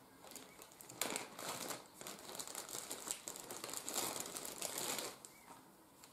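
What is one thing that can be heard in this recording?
A paper wrapper rustles and crinkles.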